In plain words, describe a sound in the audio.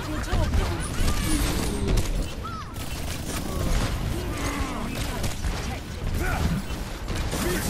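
Energy guns fire in rapid bursts with heavy thumps.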